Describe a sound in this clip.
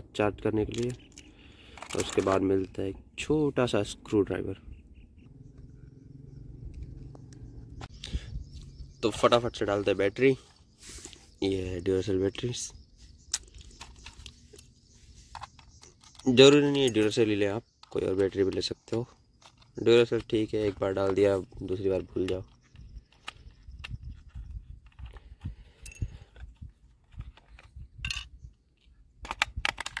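Small plastic parts click and rattle in a person's hands.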